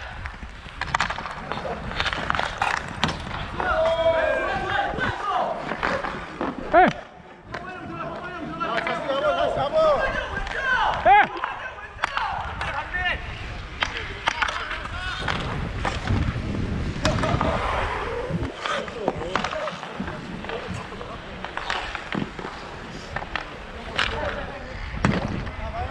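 Hockey sticks clack against a ball and against each other.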